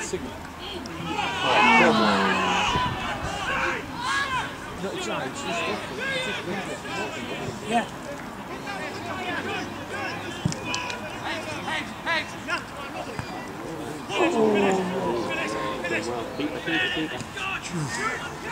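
Men shout across an open football pitch outdoors.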